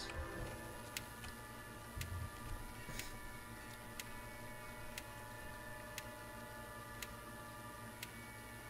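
A countdown timer ticks once a second.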